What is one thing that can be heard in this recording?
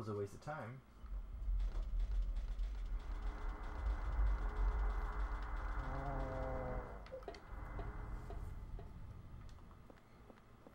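A low, rumbling drone swells and fades.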